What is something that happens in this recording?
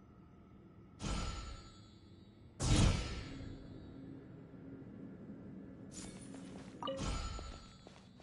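Magical whooshing chimes ring out as a device turns.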